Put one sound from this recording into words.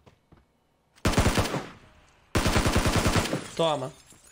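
A rifle fires two rapid bursts.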